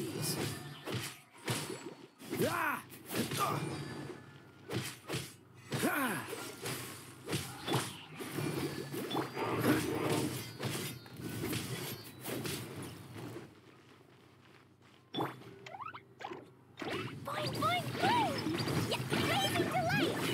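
Sword slashes and magic blasts crack and whoosh in a fight.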